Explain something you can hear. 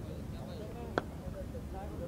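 A cricket bat strikes a ball with a sharp crack far off.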